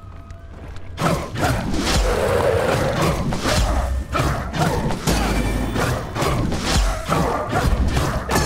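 Blades slash and clash rapidly in a fierce fight.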